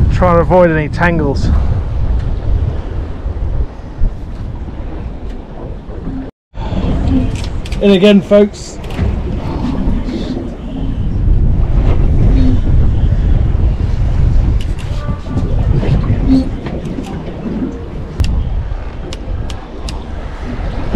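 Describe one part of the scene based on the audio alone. Wind buffets the microphone outdoors at sea.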